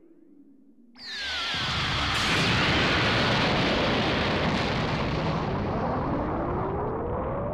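A huge explosion roars and rumbles, slowly fading.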